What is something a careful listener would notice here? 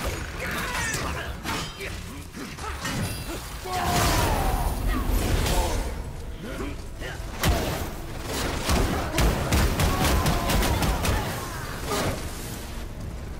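Fiery blasts burst and crackle.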